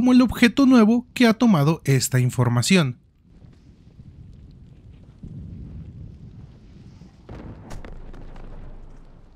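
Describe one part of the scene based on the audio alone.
A fire crackles and burns nearby.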